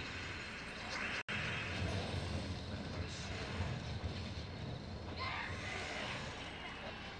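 Game sound effects burst and chime.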